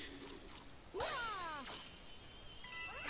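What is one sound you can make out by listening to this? A cartoon character spins with a quick whoosh.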